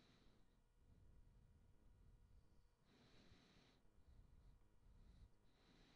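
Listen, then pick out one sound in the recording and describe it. A lighter flicks and a small flame hisses.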